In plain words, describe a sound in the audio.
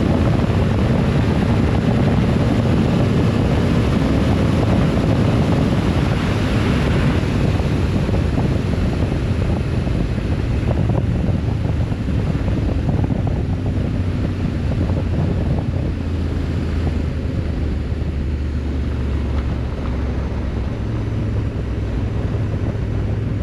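A motorcycle engine hums steadily at speed, slowing slightly later.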